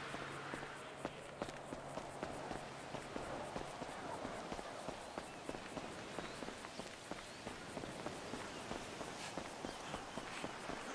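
Footsteps run quickly over dirt and grass.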